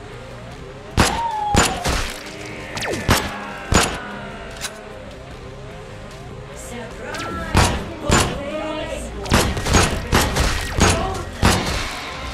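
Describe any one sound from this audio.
Pistol shots fire in a video game.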